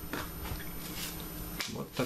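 Foil crinkles as it is unwrapped.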